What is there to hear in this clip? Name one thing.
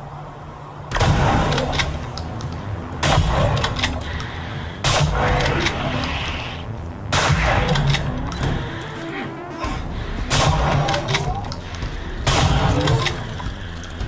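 A shotgun fires in loud booming blasts.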